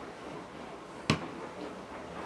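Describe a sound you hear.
A glass bottle knocks down onto a wooden table.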